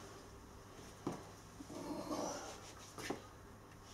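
Something knocks as a man handles it.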